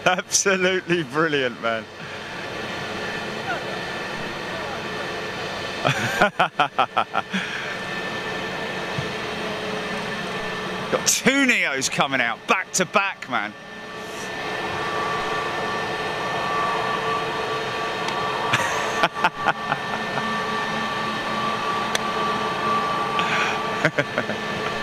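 A jet airliner's engines hum and whine steadily as it taxis past.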